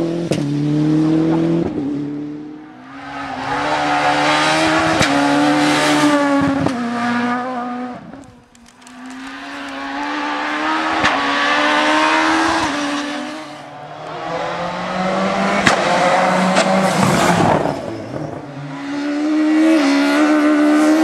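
Rally car engines roar loudly, revving up and down through gear changes.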